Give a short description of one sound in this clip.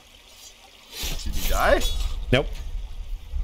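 A sword slashes through the air.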